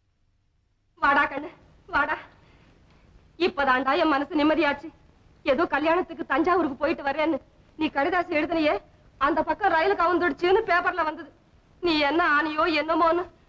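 A woman speaks with emotion.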